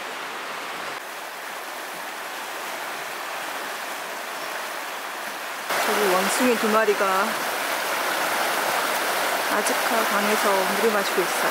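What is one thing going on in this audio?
A river rushes and splashes steadily over stones.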